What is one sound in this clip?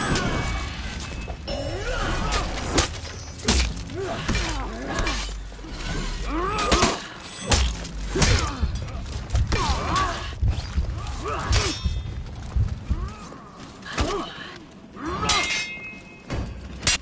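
Metal swords clash and ring sharply, again and again.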